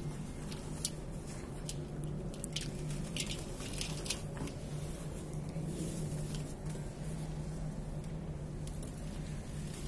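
Dry crumbly dirt crackles and crunches as hands crush it.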